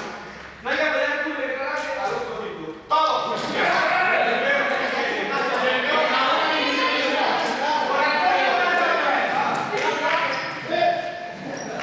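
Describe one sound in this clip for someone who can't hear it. A young man gives instructions loudly to a group.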